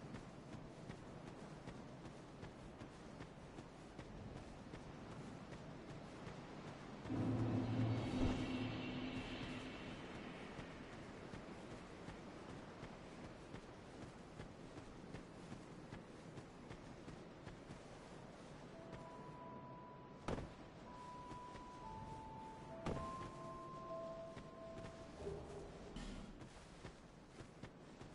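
Footsteps crunch on dirt and stone as a figure runs.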